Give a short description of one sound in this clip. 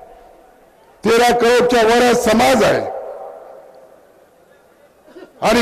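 A man speaks forcefully into a microphone over loudspeakers, his voice echoing outdoors.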